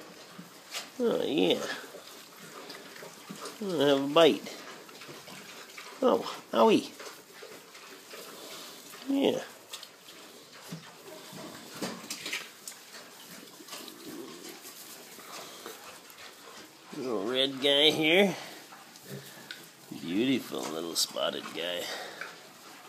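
Piglets squeal and grunt close by.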